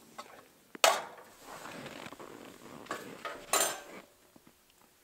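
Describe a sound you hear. Metal cookware clatters on a camp stove.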